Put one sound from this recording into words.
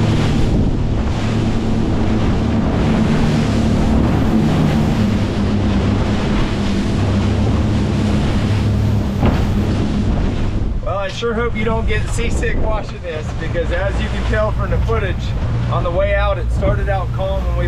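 Waves splash against the hull.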